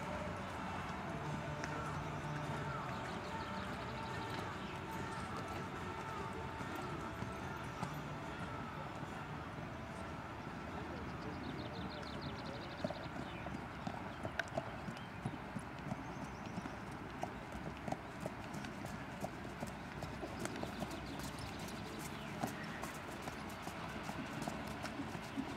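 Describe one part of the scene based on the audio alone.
A horse's hooves thud softly on sand as it trots.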